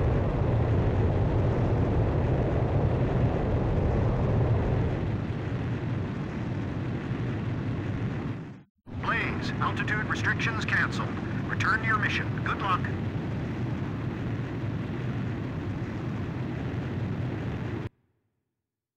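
A jet engine roars steadily as a fighter jet speeds down a runway and climbs away.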